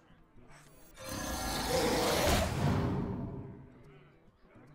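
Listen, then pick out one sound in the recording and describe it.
A game sound effect bursts as a card is played.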